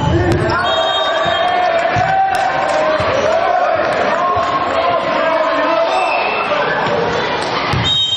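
A team of young men cheers together in a huddle.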